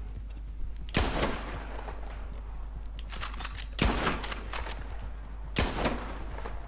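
Rifle shots ring out, each followed by a short echo.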